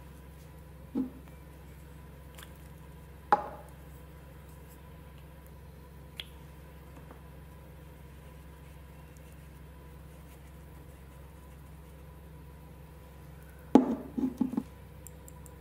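Small objects knock down onto a table.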